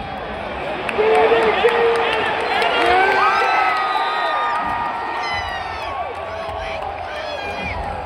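Nearby fans shout and whoop with excitement.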